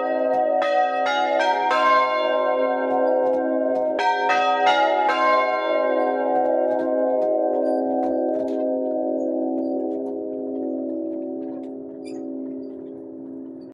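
Church bells ring loudly close by, each strike leaving a long humming tone that slowly fades.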